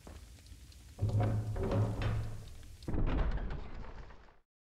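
A heavy gate bar slides and thuds.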